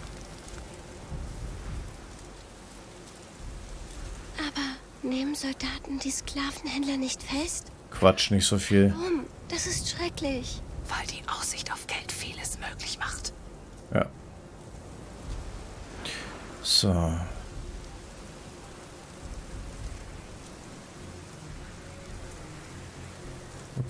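Tall grass rustles softly as people creep through it.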